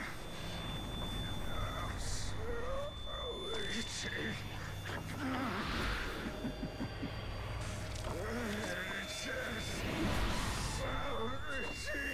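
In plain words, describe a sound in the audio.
An elderly man mutters in a strained, anxious voice.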